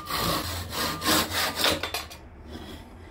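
A hand saw cuts through wood.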